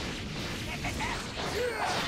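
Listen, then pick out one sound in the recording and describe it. An energy blast explodes with a loud boom.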